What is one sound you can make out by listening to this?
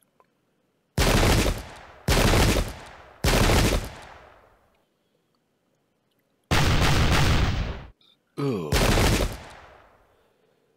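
Musket volleys crack and boom, each followed by a long rumbling fade.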